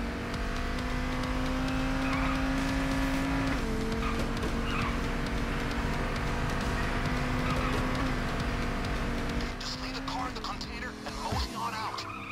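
A sports car engine roars steadily, shifting gears as it speeds up.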